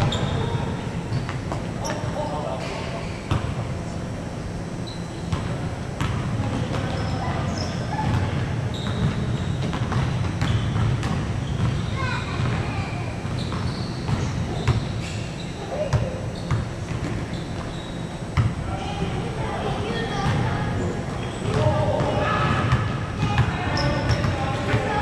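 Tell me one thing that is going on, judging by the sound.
Young men call out to each other during a game.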